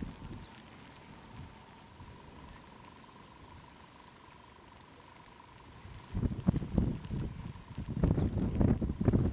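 A small bird chirps briefly.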